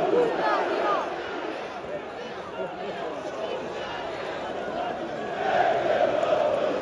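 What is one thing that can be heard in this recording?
A distant crowd murmurs steadily outdoors.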